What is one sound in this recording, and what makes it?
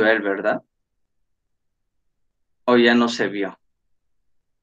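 A young man speaks calmly over an online call, in short bursts.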